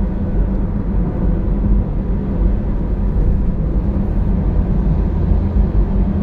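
A large truck roars past close by.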